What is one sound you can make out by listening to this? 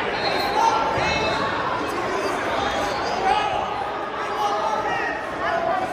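Shoes squeak sharply on a mat.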